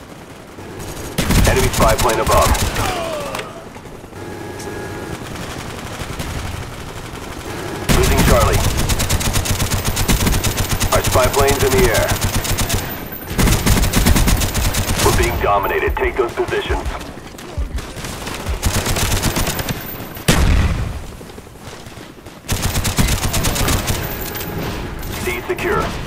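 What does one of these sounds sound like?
Rapid gunfire from a machine gun rattles in bursts.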